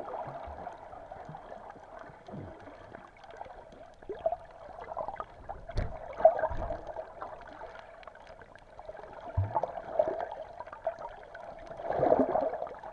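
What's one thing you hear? Water swirls and bubbles around the microphone, muffled underwater.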